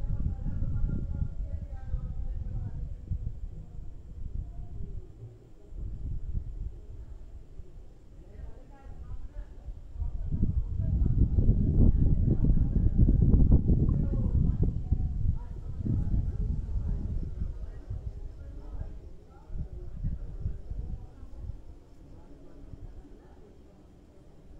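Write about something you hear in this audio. A young woman speaks softly, close to a phone microphone.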